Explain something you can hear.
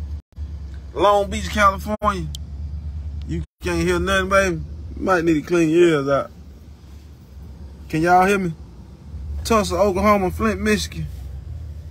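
A young man speaks animatedly close to a phone microphone.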